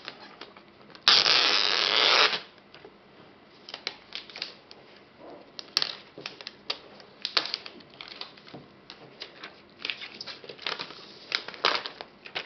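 Plastic film crinkles and rustles as it is peeled off.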